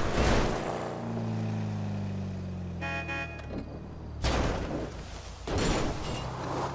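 A car thuds and crashes as it rolls down a slope.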